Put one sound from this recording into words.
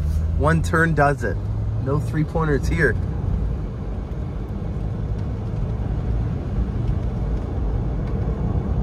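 Tyres rumble on a wet road.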